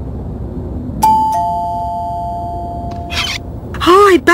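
A doorbell chimes twice.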